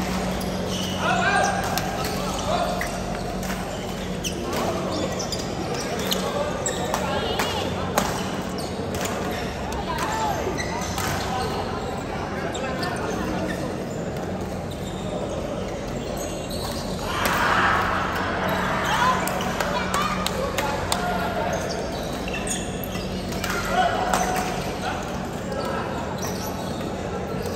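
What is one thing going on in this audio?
Men call out across a large echoing hall.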